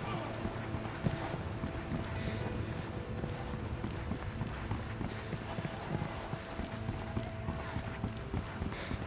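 Footsteps crunch on gravel and dirt at a steady walking pace.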